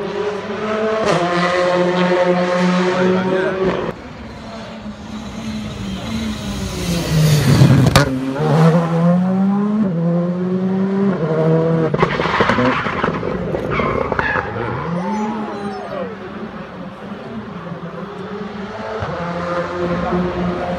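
A rally car engine roars and revs hard as the car races past close by.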